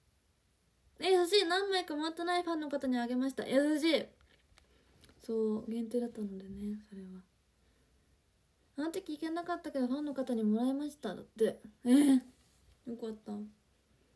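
A young woman talks calmly and close to the microphone, with pauses.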